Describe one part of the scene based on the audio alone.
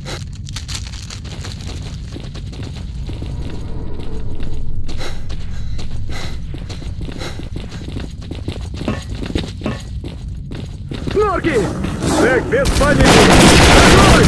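Footsteps clank on a hard floor at a steady walking pace.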